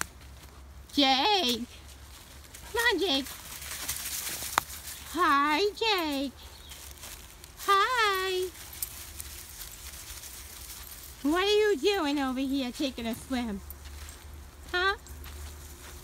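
A dog howls in short, wavering bursts nearby.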